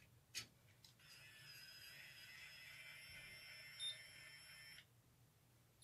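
A hair curling tool whirs steadily.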